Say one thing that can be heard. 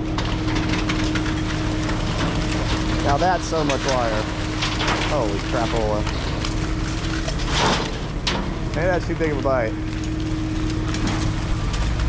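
A hydraulic crane engine hums steadily and loudly nearby.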